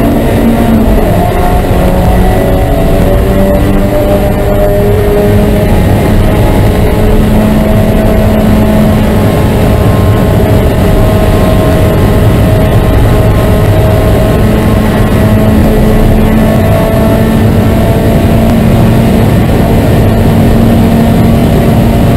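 A car's body rattles and rumbles over the track.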